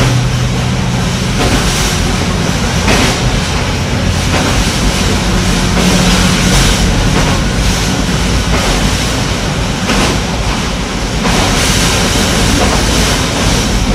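A train rumbles steadily over a steel bridge.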